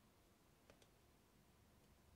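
A rubber stamp taps on an ink pad.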